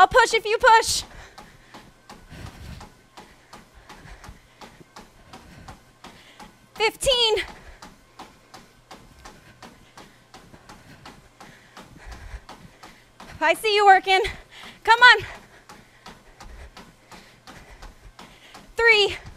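Feet pound steadily on a treadmill belt.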